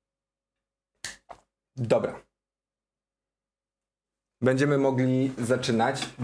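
A young man speaks close to a microphone, in short bursts with pauses.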